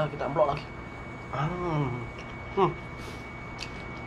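A young man chews and smacks his lips loudly.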